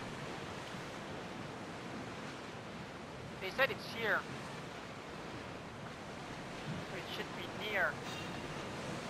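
Waves wash and splash steadily around a ship's hull.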